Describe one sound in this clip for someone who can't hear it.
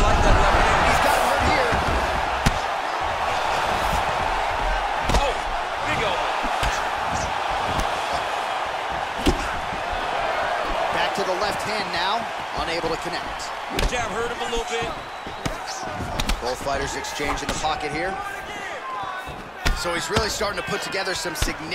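A crowd roars in a large arena.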